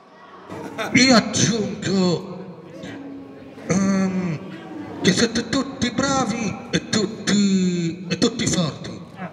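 A young man speaks with animation into a microphone, heard through a loudspeaker outdoors.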